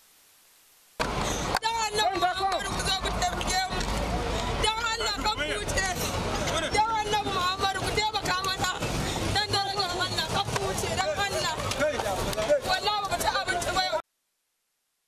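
A woman pleads loudly and emotionally close by.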